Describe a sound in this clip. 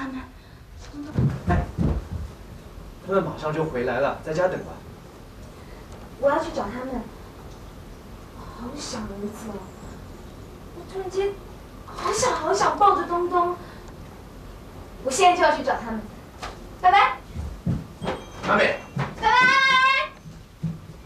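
A young woman speaks with emotion up close.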